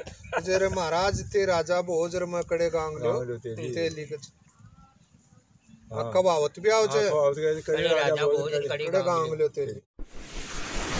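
An elderly man talks with animation, close by, outdoors.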